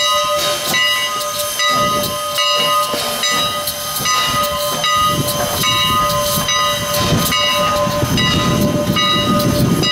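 Train wheels clank and squeal on the rails.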